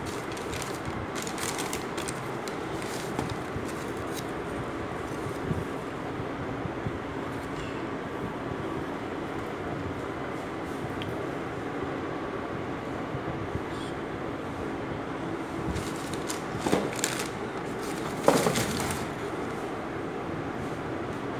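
Tissue paper rustles and crinkles as hands handle it.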